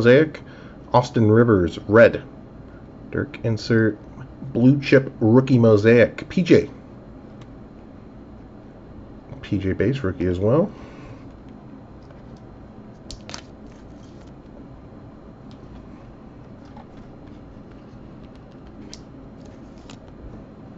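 Trading cards slide against each other as they are shuffled.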